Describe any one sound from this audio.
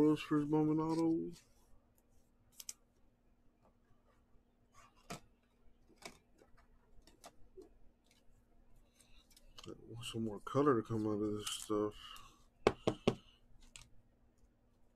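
A foil card wrapper crinkles and rustles as it is torn open and handled.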